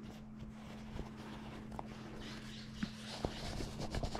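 Gloves rustle and creak as they are pulled on.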